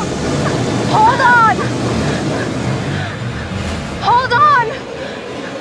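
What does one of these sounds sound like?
A young woman shouts out in distress.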